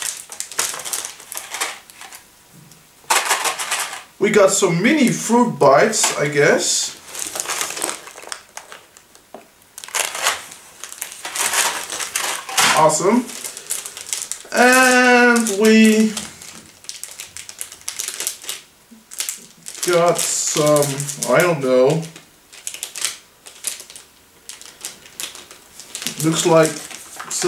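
Paper and plastic wrappers crinkle and rustle as they are torn open.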